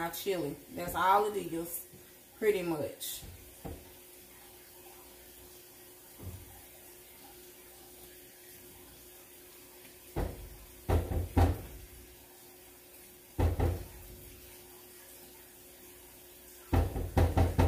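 A spoon stirs and scrapes inside a metal pot.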